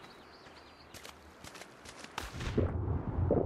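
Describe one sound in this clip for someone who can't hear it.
Water splashes as someone steps into it.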